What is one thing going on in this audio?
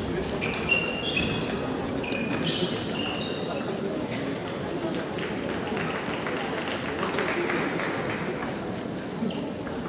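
A large hall echoes with the murmur of a crowd.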